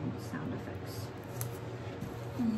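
A palette knife scrapes lightly across wet paint.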